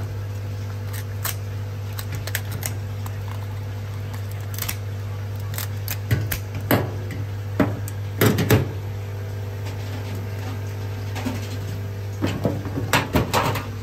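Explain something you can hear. Crab shell cracks and snaps as hands pull it apart.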